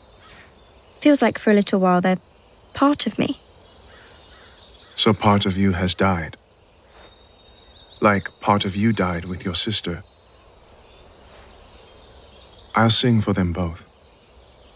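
A young man speaks quietly and gently, close by.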